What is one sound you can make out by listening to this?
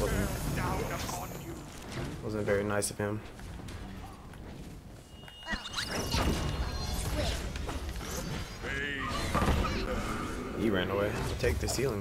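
Magical spell effects whoosh and crackle in quick bursts.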